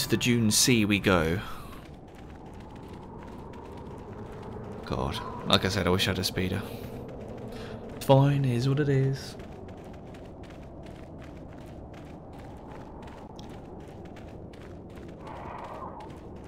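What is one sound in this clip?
Footsteps pad quickly across soft sand.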